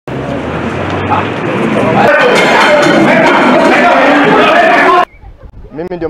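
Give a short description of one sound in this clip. A crowd of men shouts and clamours loudly.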